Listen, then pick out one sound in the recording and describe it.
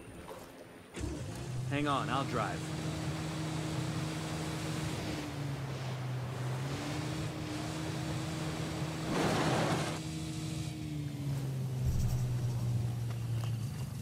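A boat engine starts and roars steadily.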